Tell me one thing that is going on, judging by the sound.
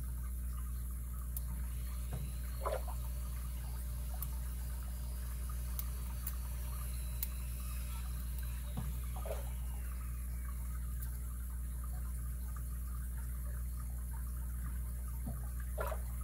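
Small metal picks scrape and click softly inside a lock.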